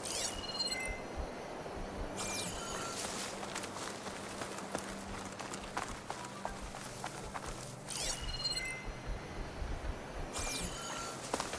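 Leaves and grass rustle as someone creeps through dense undergrowth.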